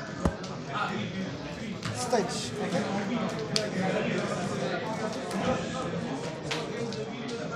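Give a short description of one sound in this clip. Playing cards slap and slide onto a mat.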